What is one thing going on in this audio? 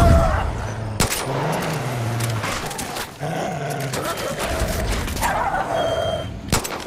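A pistol fires loud sharp shots.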